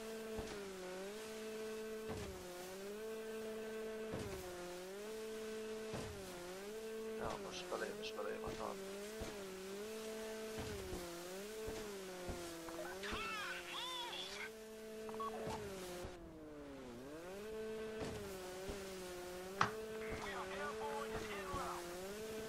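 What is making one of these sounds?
Water splashes and sprays around a speeding jet ski.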